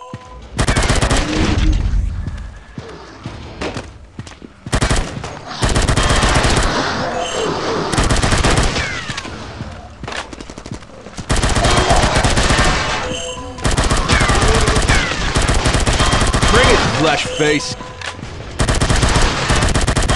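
Zombies growl and groan.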